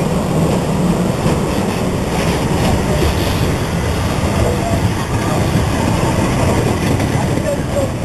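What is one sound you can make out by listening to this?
Railway carriages clatter and rumble over the rails.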